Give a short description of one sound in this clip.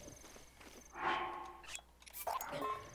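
Soft menu chimes and clicks ring out.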